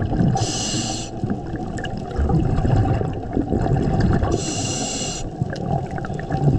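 Water swishes and rumbles steadily all around underwater.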